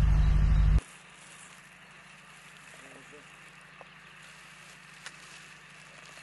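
Plastic wrapping crinkles as packages are handed over.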